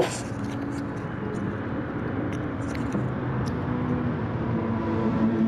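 A racing car engine roars and whines as it shifts through the gears.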